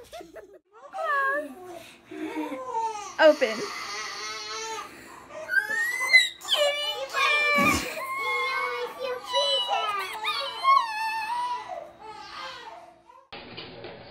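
A young girl sobs and cries loudly close by.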